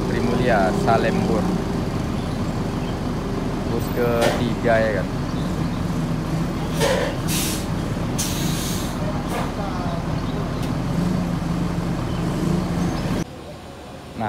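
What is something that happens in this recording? A large bus engine rumbles steadily close by.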